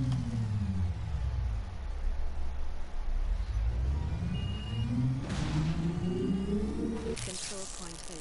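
A large machine engine hums and rises in pitch.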